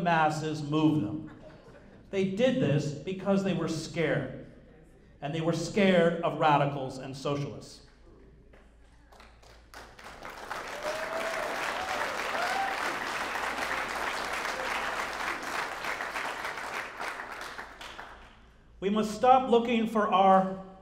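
A man speaks through a microphone to an audience.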